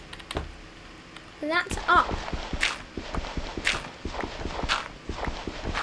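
Blocks of dirt crunch and crumble as they are dug out one after another.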